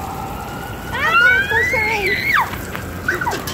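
A young girl squeals.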